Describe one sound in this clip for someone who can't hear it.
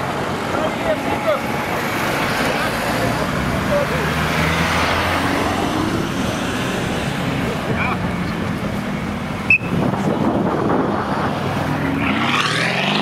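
A powerful car engine idles with a deep rumble nearby.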